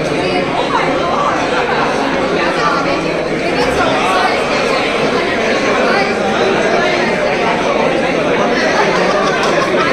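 A man talks and laughs cheerfully.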